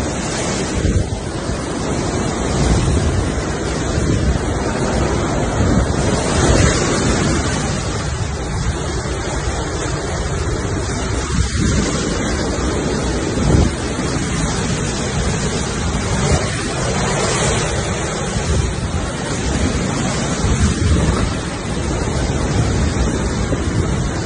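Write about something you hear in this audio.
Tree branches thrash and rustle in the wind.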